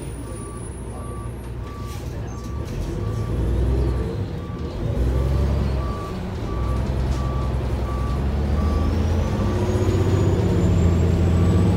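A bus engine rumbles and grows louder as the bus pulls away.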